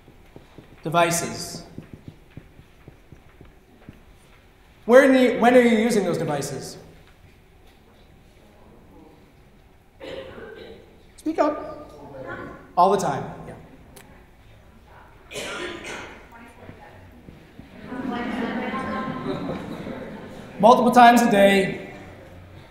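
A middle-aged man speaks with animation to an audience.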